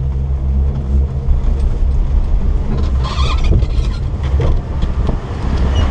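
A chairlift clanks and rattles into the station.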